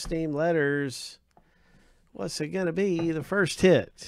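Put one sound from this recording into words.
Hands slide a box lid open with a light scraping sound.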